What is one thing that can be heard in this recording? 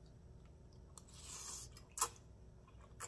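A woman slurps noodles loudly up close.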